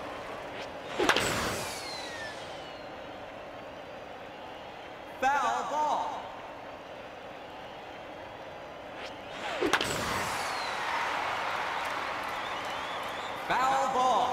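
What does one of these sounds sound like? A crowd cheers and roars in a large stadium.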